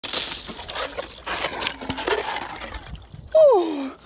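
Water splashes as a young woman moves in icy water.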